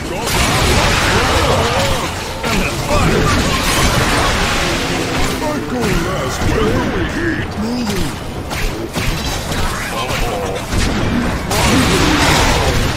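Traps and weapons crash and burst over and over.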